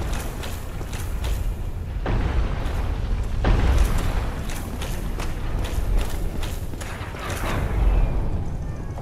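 Heavy armoured footsteps clank quickly on a stone floor.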